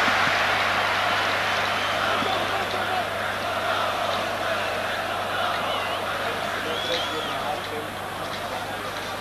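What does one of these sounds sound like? A large stadium crowd roars steadily outdoors, slowly growing quieter.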